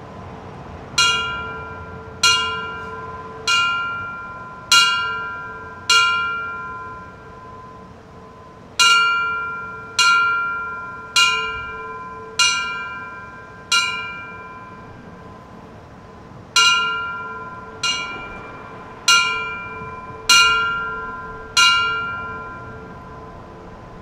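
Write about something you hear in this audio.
A bell rings out in slow strikes, each one ringing on and fading away.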